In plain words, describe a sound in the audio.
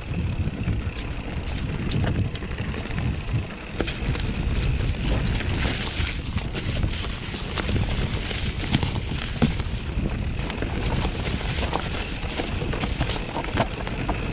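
A bicycle frame rattles and clicks over bumps.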